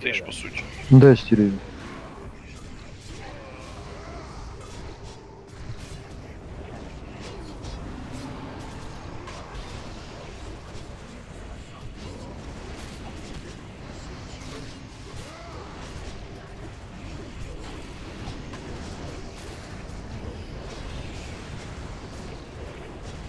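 Magic spells crackle and boom in a fight.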